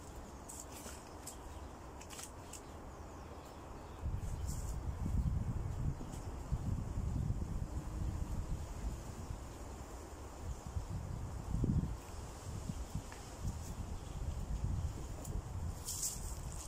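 Dry leaves rustle and crackle as they are gathered up by hand.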